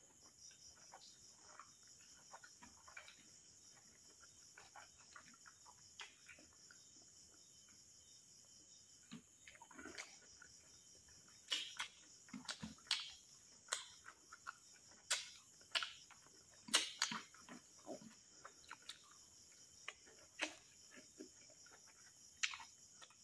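Fingers squish and mix rice.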